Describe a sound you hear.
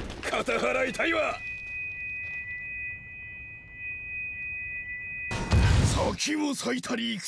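A magical blast whooshes and crackles in a burst of energy.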